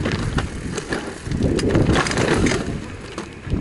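Bicycle tyres rattle and crunch over loose rocks.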